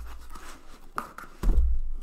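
A cardboard box is set down with a soft thud.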